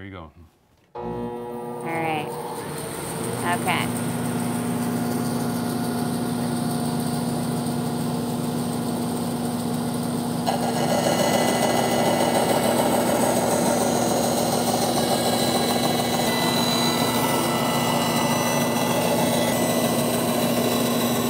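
A band saw motor runs with a steady hum.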